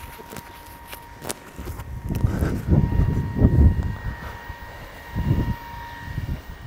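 Footsteps walk on paving outdoors.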